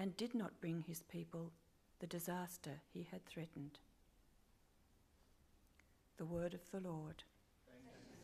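An elderly woman reads aloud calmly into a microphone.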